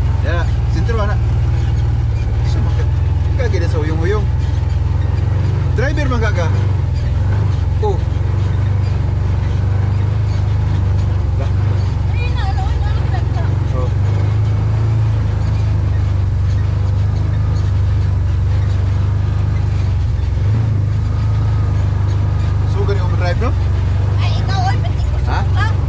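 A utility vehicle's engine rumbles steadily at close range.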